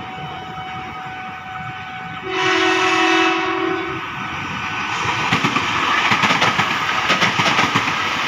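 A train rumbles and clatters past close by on the rails.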